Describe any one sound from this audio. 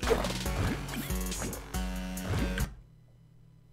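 Game music plays loudly and then cuts off.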